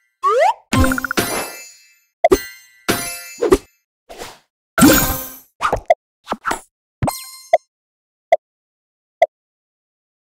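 Game menu chimes and clicks sound in quick bursts.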